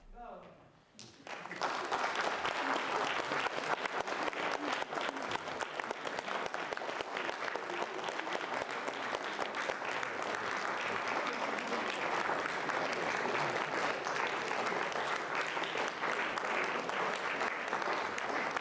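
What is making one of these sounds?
An audience applauds loudly and steadily in a large hall.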